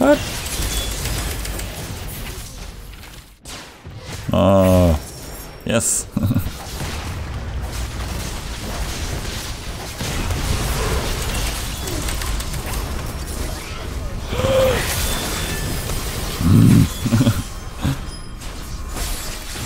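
Spell effects whoosh and crackle amid a fight.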